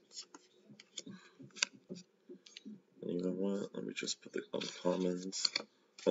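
Playing cards slide and tap against each other.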